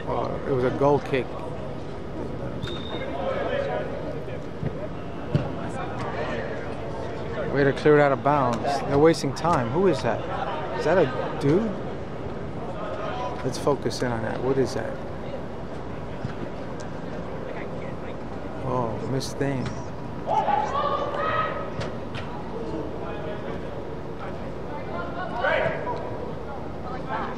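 Young men and women shout to each other across a large echoing hall.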